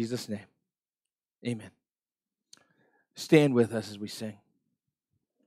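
A man speaks into a microphone in short phrases, in a room with a slight echo.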